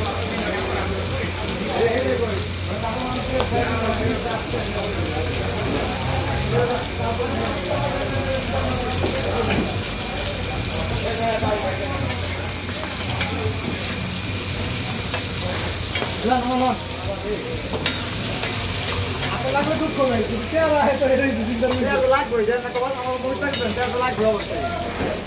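Fish sizzles and hisses in hot oil on a griddle.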